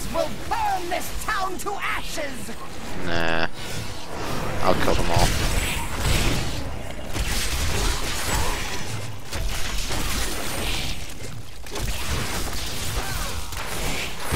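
Spells and weapon blows crackle and explode in fast, dense bursts.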